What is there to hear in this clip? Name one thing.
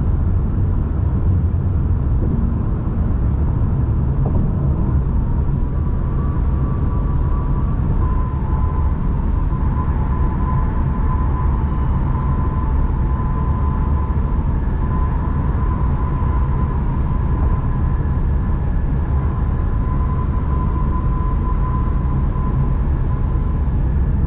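A car engine hums steadily with road noise from the tyres.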